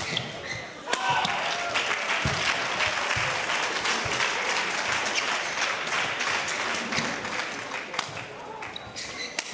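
A large crowd cheers and applauds loudly in a big echoing hall.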